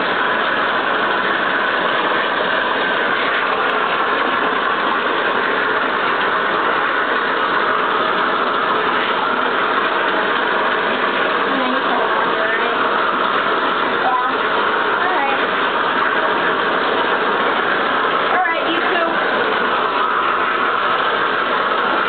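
Water from a tap runs steadily and splashes into a bathtub.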